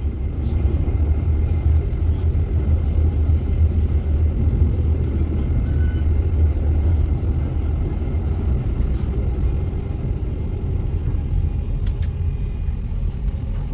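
A tram rumbles steadily along the rails.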